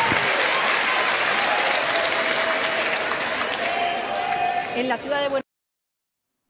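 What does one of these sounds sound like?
A large crowd applauds and cheers loudly.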